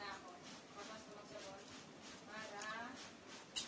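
A young woman licks her fingers with soft smacking sounds.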